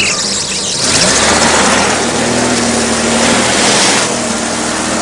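Car tyres roll over gravel.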